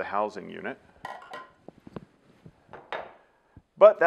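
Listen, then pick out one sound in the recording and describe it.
Plastic parts click and clatter as a man handles them.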